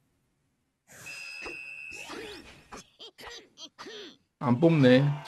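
Game sound effects clash and whoosh during a fight.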